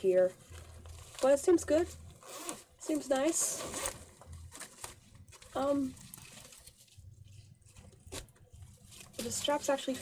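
Fabric rustles as a bag is handled.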